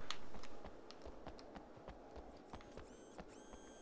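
Footsteps run on a hard surface.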